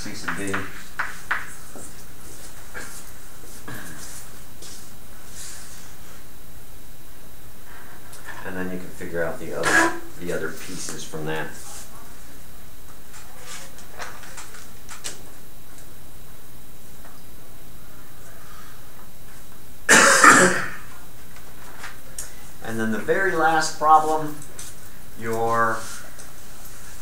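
An elderly man speaks calmly, lecturing.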